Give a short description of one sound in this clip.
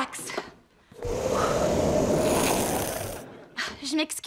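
A magical burst of fire whooshes and roars.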